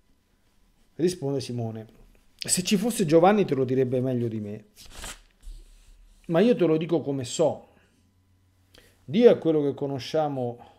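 A middle-aged man speaks calmly and slowly, close to a microphone, pausing between phrases.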